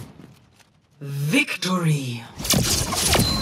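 A powerful energy blast whooshes with a wavering, swooping tone.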